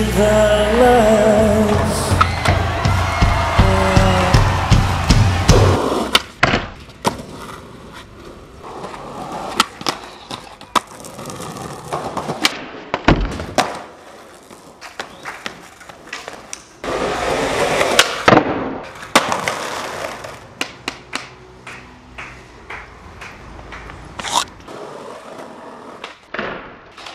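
Skateboard wheels roll over pavement.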